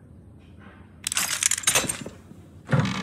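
A metal combination lock snaps open and clanks.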